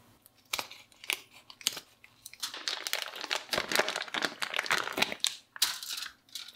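Scissors snip through plastic wrap.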